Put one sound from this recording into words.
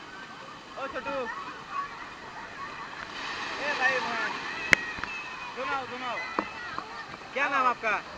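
Water splashes as people play in a pool.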